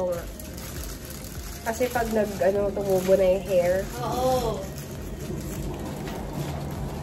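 Aluminium foil crinkles as it is handled.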